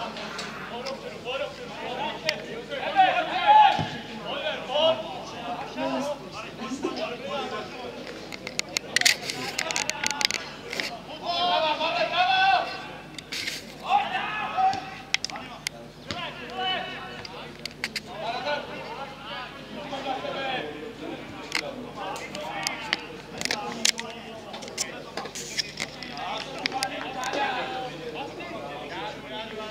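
Football players shout and call to each other across an open field.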